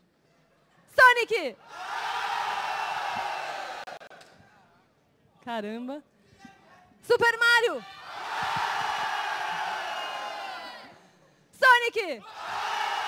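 A young woman shouts with excitement through a loudspeaker in a large hall.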